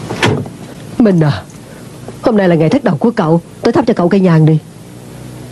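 A middle-aged woman speaks with feeling, close by.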